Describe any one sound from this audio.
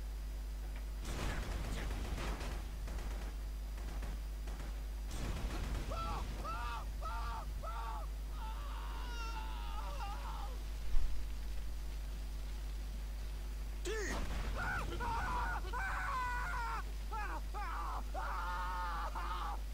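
A flamethrower roars in short bursts.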